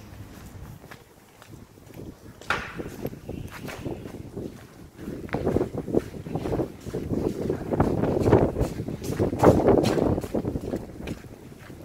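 Footsteps scuff on wet, slushy paving in a covered passage.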